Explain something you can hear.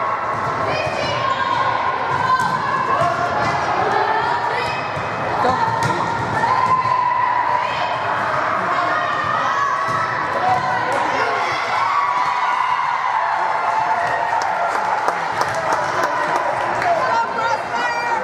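Teenage girls call out to each other in an echoing gym.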